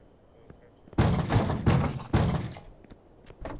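Knocks sound on a wooden door.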